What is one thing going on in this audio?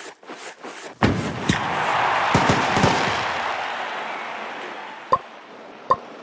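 A cheerful burst of celebration sounds out, then slowly fades.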